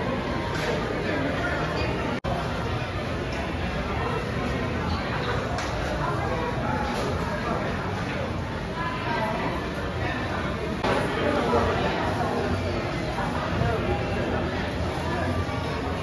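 A crowd of people chatters steadily in a large, echoing indoor space.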